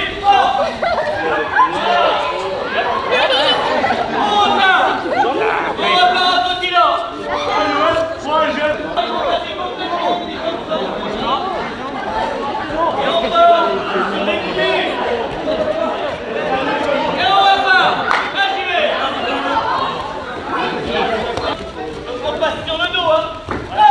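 Many children chatter and call out in a large echoing hall.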